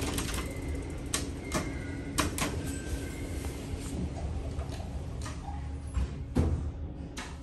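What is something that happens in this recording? An elevator hums low and steady as it moves.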